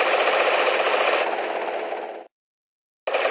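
A helicopter's rotor whirs and thumps steadily.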